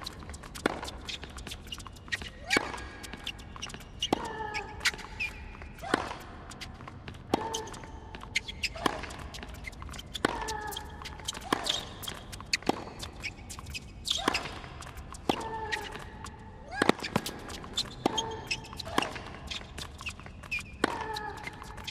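A tennis ball is struck back and forth with sharp, regular pops of a racket.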